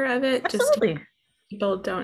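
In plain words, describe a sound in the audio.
A younger woman speaks earnestly over an online call.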